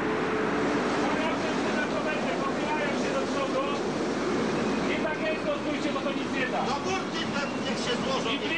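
Strong wind roars outdoors.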